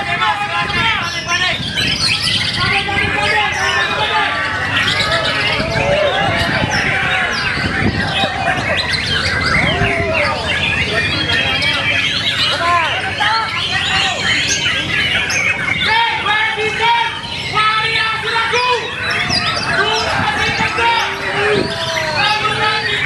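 A songbird sings loud, fast, varied chirping whistles close by.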